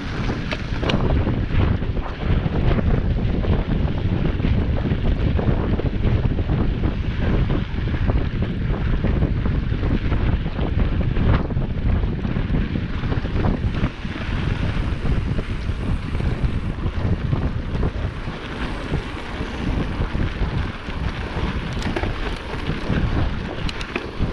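Bicycle tyres crunch over snow.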